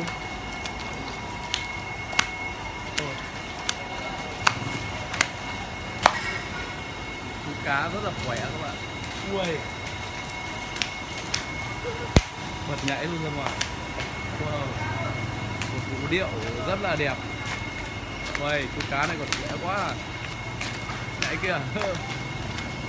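A fish flaps and slaps on wet ground.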